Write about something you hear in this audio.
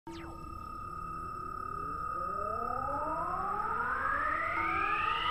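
A flying saucer hums with a steady whine and a rising, sweeping tone.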